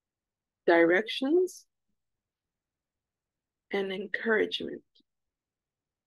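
A woman speaks calmly through an online call, in short phrases.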